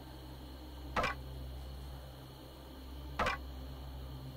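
Short metallic clanks ring out as game equipment is put on.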